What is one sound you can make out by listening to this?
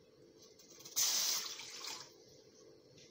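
Water splashes as it pours into a metal pan.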